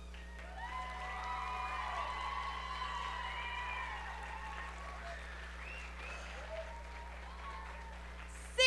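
Children sing together on stage, echoing through a large hall.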